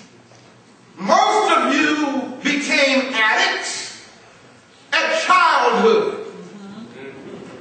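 A man preaches forcefully into a microphone, his voice echoing in a large hall.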